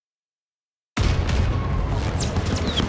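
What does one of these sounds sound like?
Gunshots crack nearby in a battle.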